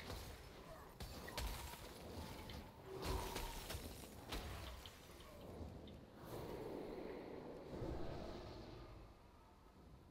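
Magic spells crackle and whoosh in a video game.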